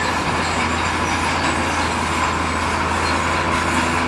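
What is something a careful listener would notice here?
Rocks and rubble slide and clatter out of a truck bed.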